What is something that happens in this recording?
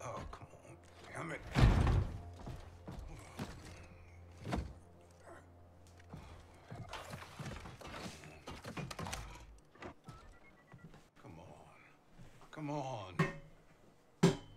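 A man mutters in frustration, close and clear.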